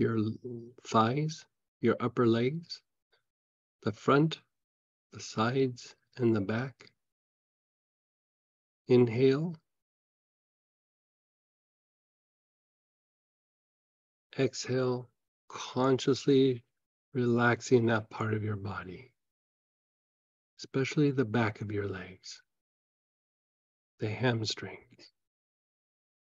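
A middle-aged man speaks calmly over an online call, with long pauses.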